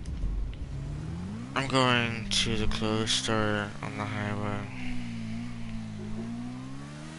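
A motorcycle engine revs up and drones on.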